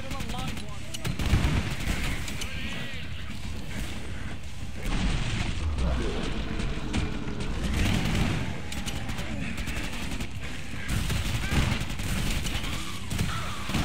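Monsters screech and growl.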